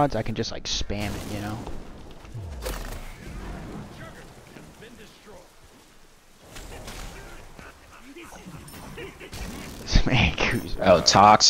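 Magic blasts and zaps from a video game crackle and whoosh.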